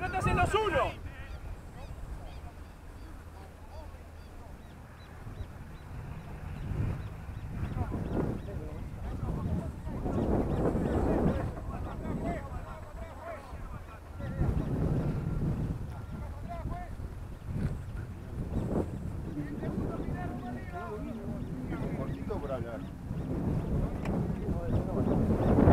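Wind blusters over an open field.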